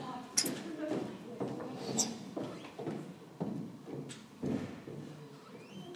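A young woman's footsteps tap across a wooden floor.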